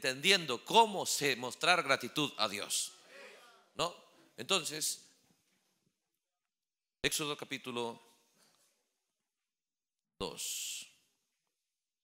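A man preaches with passion into a microphone, heard over loudspeakers in an echoing hall.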